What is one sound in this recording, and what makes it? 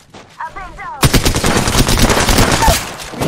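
A video game rifle fires in rapid automatic bursts.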